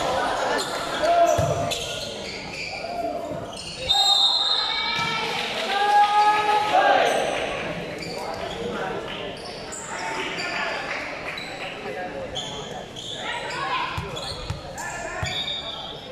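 A ball thuds as players hit it.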